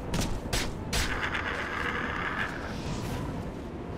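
A fireball whooshes past.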